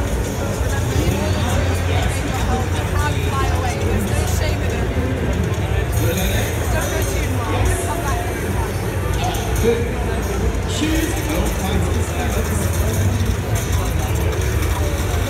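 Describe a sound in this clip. A crowd murmurs and chatters in the background of a busy, noisy hall.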